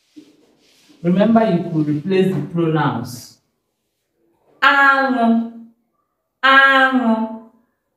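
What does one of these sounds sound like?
A woman speaks clearly and with animation, close to a microphone.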